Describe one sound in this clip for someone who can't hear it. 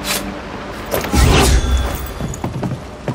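A loud crackling burst erupts with a rushing whoosh.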